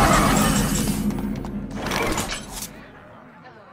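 A game chime and swoosh sound as a turn begins.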